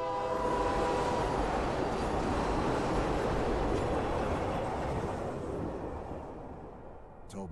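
A train rumbles past and fades away.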